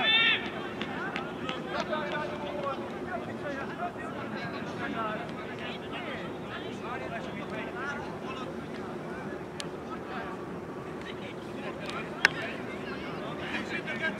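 Young men talk and call out to each other at a distance outdoors.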